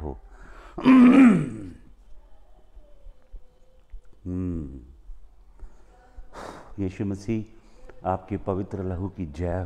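A man sings close by.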